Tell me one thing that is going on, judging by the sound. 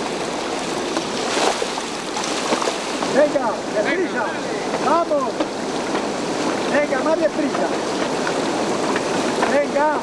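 Water splashes as people wade through a stream.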